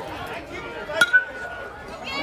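A metal bat strikes a ball with a sharp ping.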